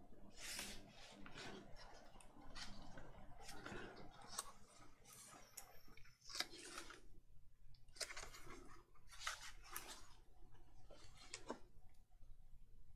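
Hands rub and smooth over paper.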